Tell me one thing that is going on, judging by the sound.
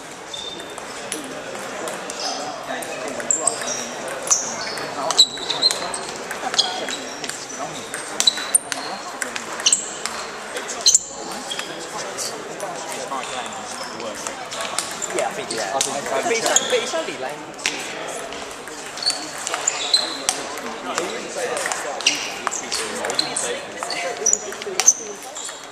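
A table tennis ball clicks back and forth off paddles and the table, echoing in a large hall.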